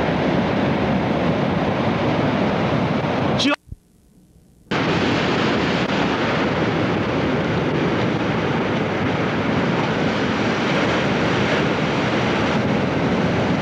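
Ocean waves crash and roar loudly.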